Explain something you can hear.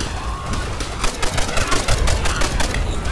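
Gunfire rattles in rapid bursts close by.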